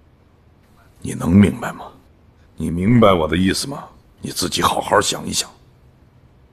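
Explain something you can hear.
A middle-aged man speaks calmly and firmly nearby.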